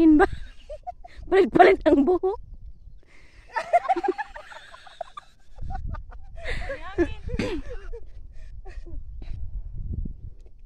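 Young women talk and laugh nearby, outdoors.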